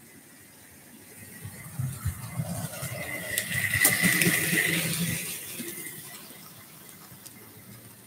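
A model train rumbles along its track, growing louder as it approaches and then fading away.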